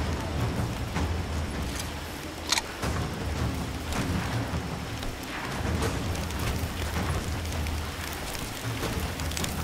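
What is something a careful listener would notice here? Fires crackle and roar steadily.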